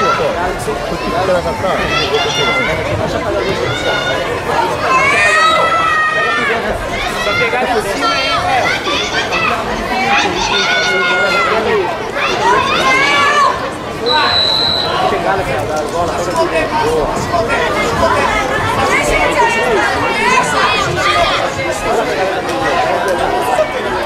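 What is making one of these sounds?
A crowd of men and women chatters and shouts in a large echoing hall.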